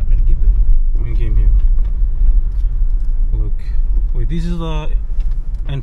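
A man calls out loudly nearby outside the car.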